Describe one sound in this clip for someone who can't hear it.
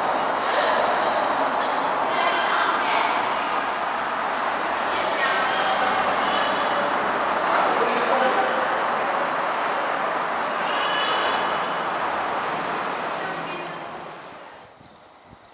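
Heavy traffic roars past on a busy motorway.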